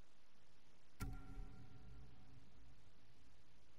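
A ringing chime with a metallic clatter marks an item being equipped.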